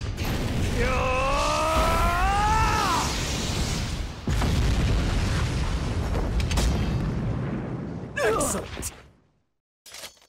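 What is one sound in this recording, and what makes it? Flames roar and whoosh loudly.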